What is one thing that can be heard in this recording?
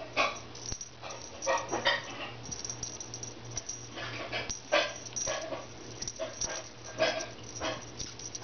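A feather toy swishes and rustles through the air.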